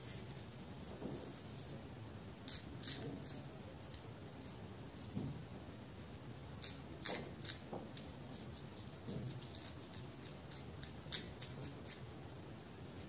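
Fingers rub and scratch through hair with soft crackling sounds.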